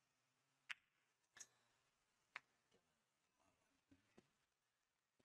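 Billiard balls click against each other and knock off the cushions.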